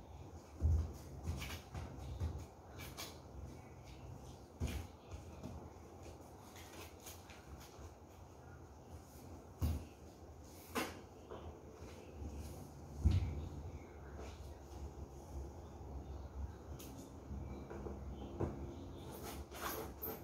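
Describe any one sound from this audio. A cardboard box rustles and thumps as things are packed into it.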